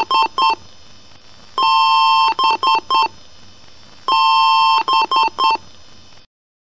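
A computer beeps in short and long high tones.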